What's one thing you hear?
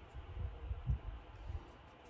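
A hand softly bumps and rubs against a board.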